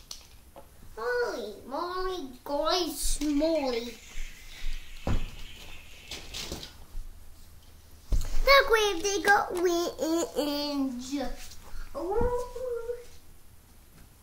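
A young child talks excitedly nearby.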